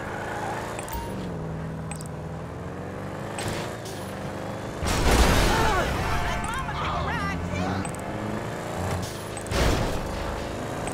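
A car engine hums and revs as the car drives along a street.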